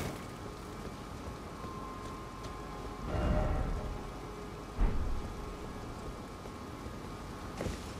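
Armoured footsteps run on stone.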